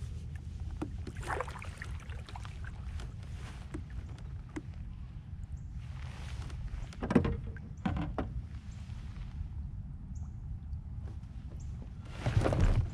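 A kayak paddle dips and splashes in water with soft swooshing strokes.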